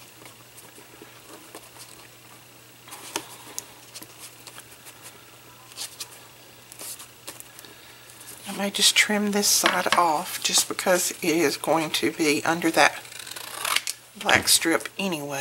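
Paper rustles and scrapes as it is handled.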